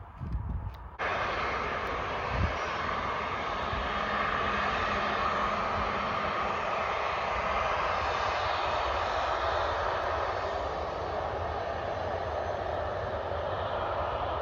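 A jet airliner roars loudly as it lands and rolls down the runway.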